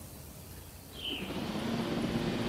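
A large dinosaur grunts and rumbles nearby.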